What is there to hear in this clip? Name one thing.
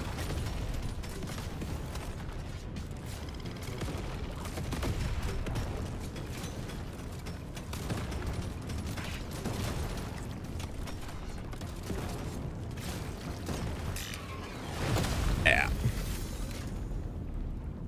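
Rapid gunfire rattles in a game.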